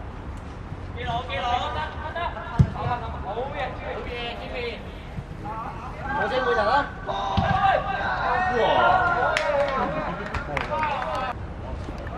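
Boys shout and call out loudly outdoors.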